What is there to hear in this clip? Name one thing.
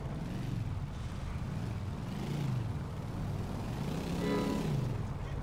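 Motorcycle engines rumble steadily.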